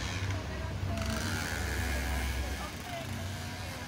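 A motor scooter rides past.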